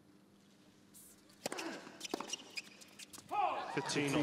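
A tennis racket strikes a ball with a sharp pop.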